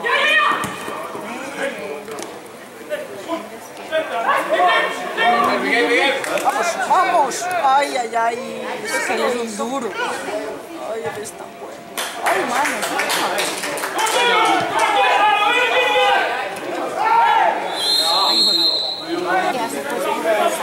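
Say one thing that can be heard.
Men talk casually close by.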